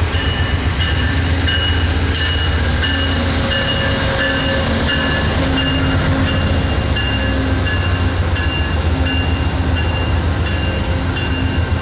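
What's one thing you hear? Train wheels clatter and squeal on the rails as passenger cars roll by.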